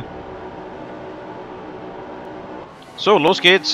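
A racing car engine idles with a steady hum.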